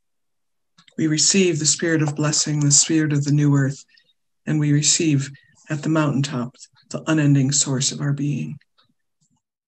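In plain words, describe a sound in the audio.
An older woman speaks calmly and clearly into a close microphone.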